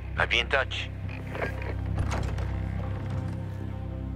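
A door latch clicks as a door is opened.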